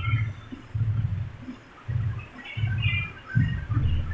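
A switch clicks once.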